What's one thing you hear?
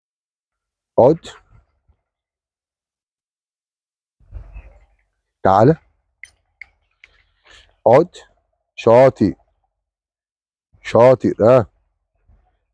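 A man calls out short, firm commands close to a microphone, outdoors.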